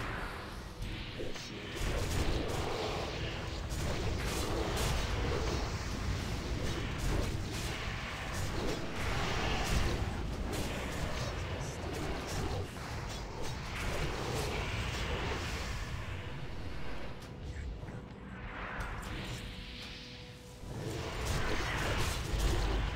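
Magic spells whoosh and crackle in a fast-paced fight.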